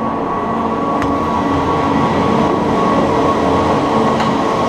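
A chairlift clatters over the wheels of a station.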